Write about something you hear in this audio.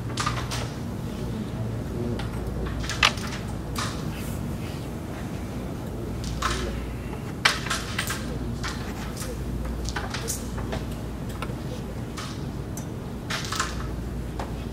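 Carrom pieces click sharply against each other on a wooden board.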